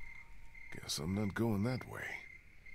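A man speaks quietly and wearily, close by.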